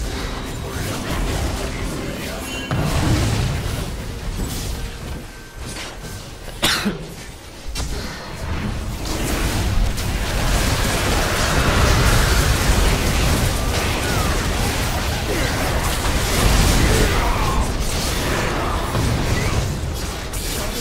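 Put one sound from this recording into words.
Fantasy battle sound effects clash, with magic blasts and hits.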